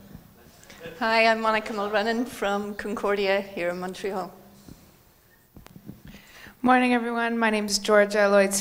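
A woman speaks clearly through a microphone, heard over a loudspeaker.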